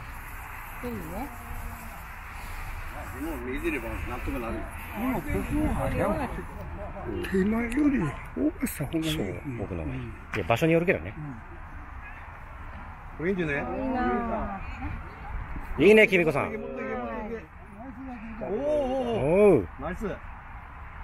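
Men talk casually close by.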